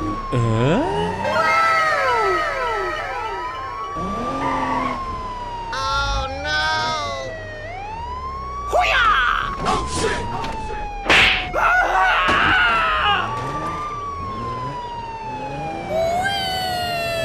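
A police siren wails steadily, rising and falling.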